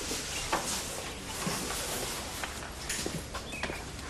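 A young woman sobs quietly.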